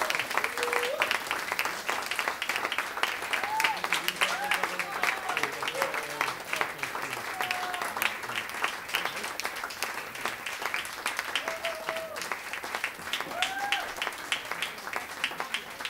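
An audience claps and applauds steadily.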